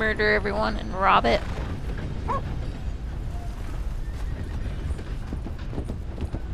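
Horse hooves thud steadily on the ground.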